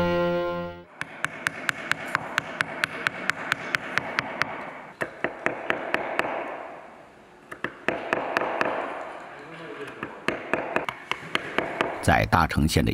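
A mallet taps a carving chisel into wood in quick, even knocks.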